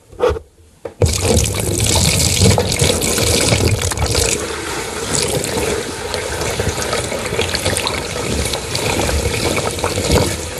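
A fine powder pours and rustles over plastic bricks.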